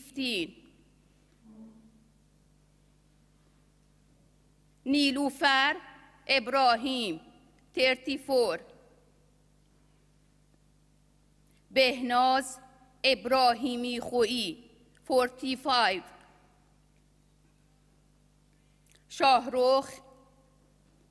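A woman reads out slowly through a microphone, with pauses.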